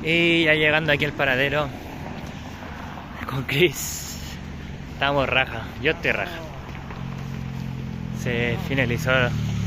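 A car drives by on a road at night.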